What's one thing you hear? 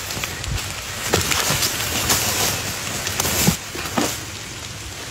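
Dry leaves rustle and crunch as animals struggle on the ground.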